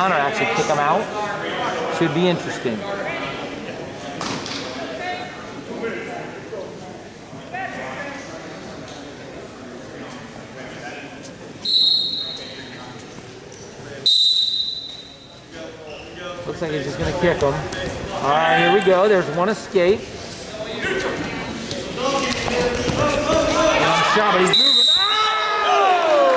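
Spectators shout and cheer in a large echoing gym.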